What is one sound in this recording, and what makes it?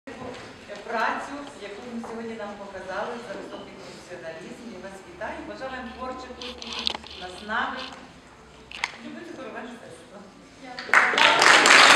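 A middle-aged woman speaks calmly in an echoing hall.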